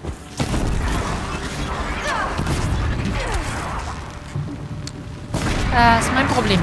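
Fire crackles and sparks burst in a game.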